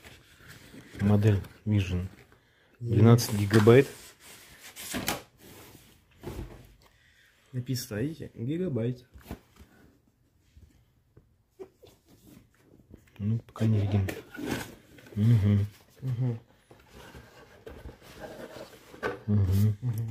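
Cardboard packaging scrapes and rustles as hands handle it.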